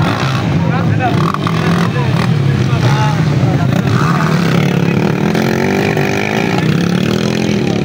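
A dirt bike engine revs nearby.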